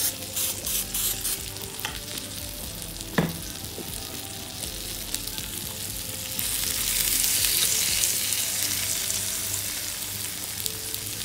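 Water bubbles and simmers in a pot.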